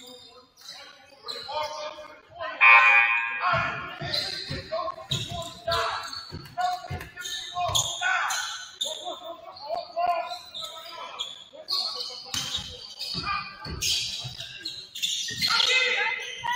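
Players call out to each other from across the court.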